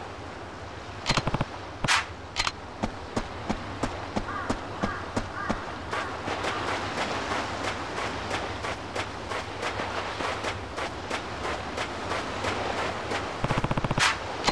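A man's footsteps run quickly along a paved road and then on sand.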